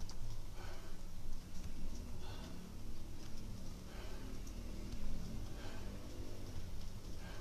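A man breathes out hard in a steady rhythm.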